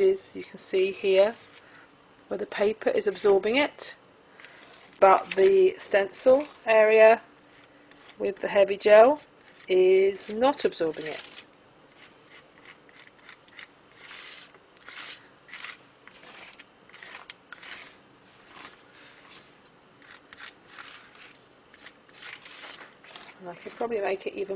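A sponge dabs softly against paper.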